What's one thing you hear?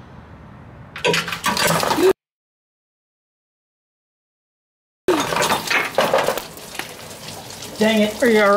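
Oil gushes and splashes into a drain pan.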